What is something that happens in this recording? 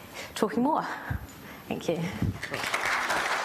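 A woman speaks cheerfully into a microphone.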